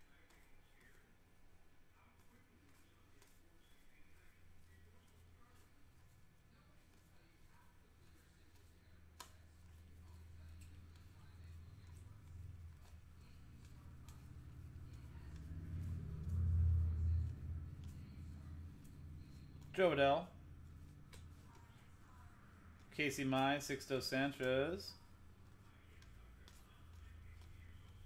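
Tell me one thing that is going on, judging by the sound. Trading cards slide and flick against each other.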